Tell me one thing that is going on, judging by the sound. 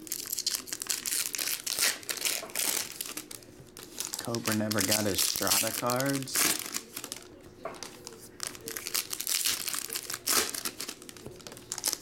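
Foil wrappers crinkle and tear as hands open them.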